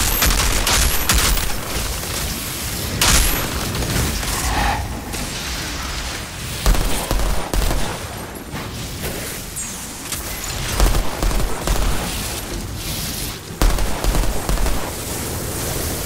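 Rifle fire rattles in quick bursts.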